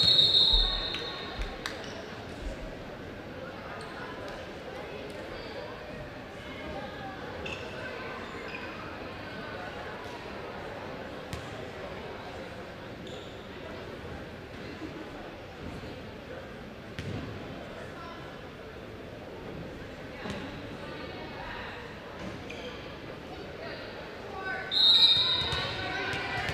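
A referee's whistle blows sharply, echoing in a large hall.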